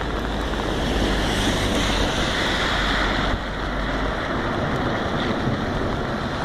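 Tyres hiss on a wet road as a car drives past.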